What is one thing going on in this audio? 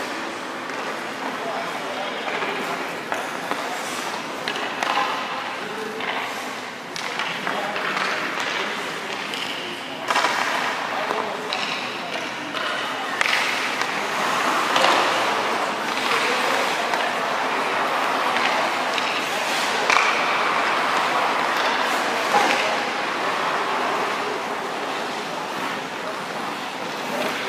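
A man talks calmly, explaining, in a large echoing rink.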